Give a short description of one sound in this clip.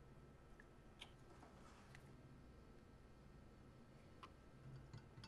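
A spoon clinks against a glass pitcher while stirring.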